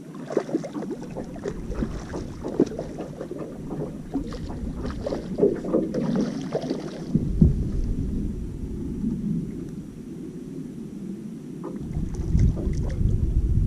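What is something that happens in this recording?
Wind rumbles across the water outdoors.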